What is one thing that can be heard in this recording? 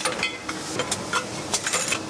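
Metal bottles clink against each other.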